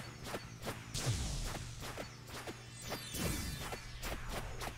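Whooshing blasts sweep downward in pitch.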